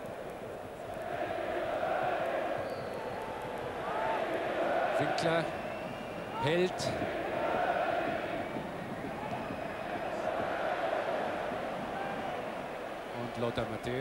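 A large stadium crowd roars and cheers outdoors.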